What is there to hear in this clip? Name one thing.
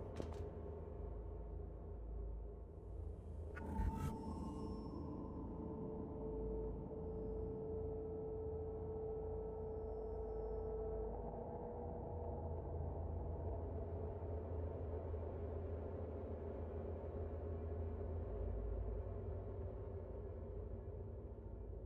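Soft, steady electronic game music plays throughout.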